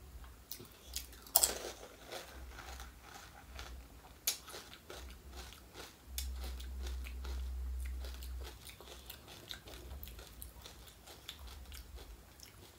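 A woman chews and slurps wetly close to a microphone.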